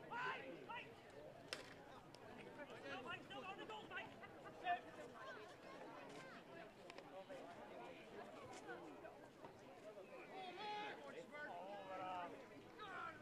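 Young women players call out to each other across an open field.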